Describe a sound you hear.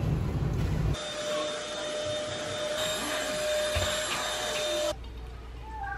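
A vacuum cleaner runs with a steady hum.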